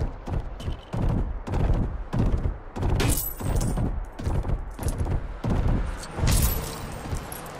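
Heavy footsteps thud in a quick rhythm.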